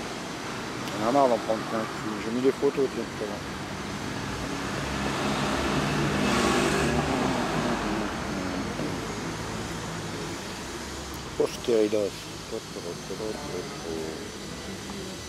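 An elderly man speaks close to the microphone.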